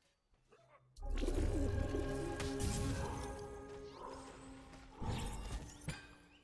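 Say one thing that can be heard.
Magic spells burst and whoosh in quick blasts.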